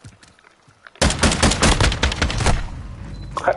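A rifle fires in a rapid, loud burst.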